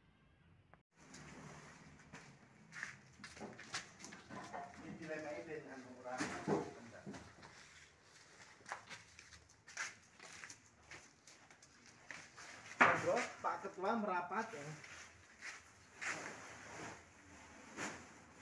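Plastic sacks rustle and thump as they are carried and dropped.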